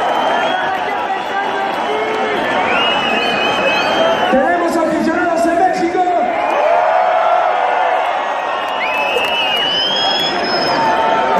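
A crowd cheers and shouts loudly close by.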